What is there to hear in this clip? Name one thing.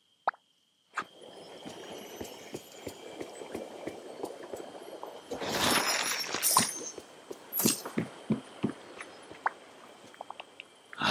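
Magical sparkles shimmer and tinkle.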